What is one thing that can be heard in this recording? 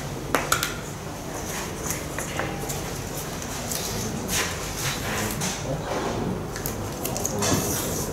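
Paper slips rustle as a man unfolds them.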